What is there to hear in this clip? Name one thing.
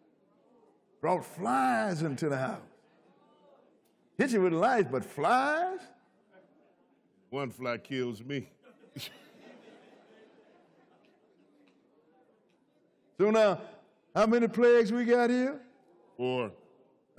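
An elderly man speaks into a microphone with animation, in short bursts.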